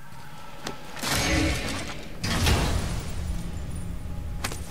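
A magical burst shimmers as a chest bursts open.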